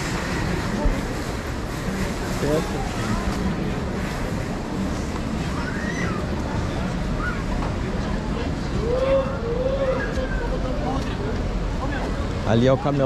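A busy outdoor street crowd murmurs with distant voices all around.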